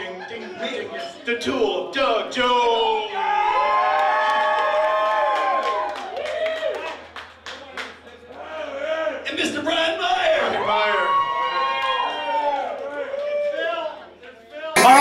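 A man sings loudly into a microphone with the band.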